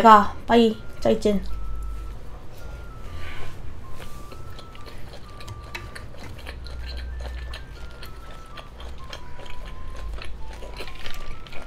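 A young woman chews food with soft smacking sounds close to a microphone.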